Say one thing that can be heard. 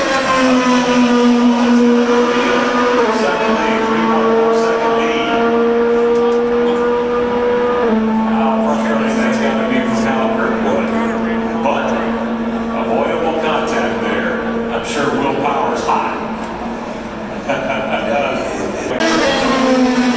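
A crowd murmurs nearby in an open grandstand.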